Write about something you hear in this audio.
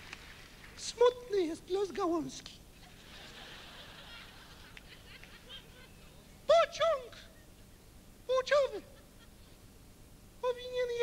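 A man speaks through a microphone in a strained, exaggerated voice.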